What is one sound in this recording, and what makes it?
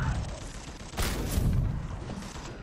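A sword swooshes through the air.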